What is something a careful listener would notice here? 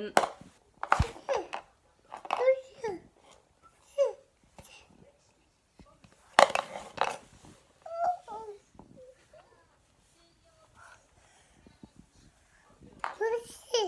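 A baby babbles and coos nearby.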